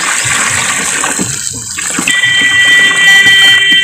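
Water pours and splashes into a barrel.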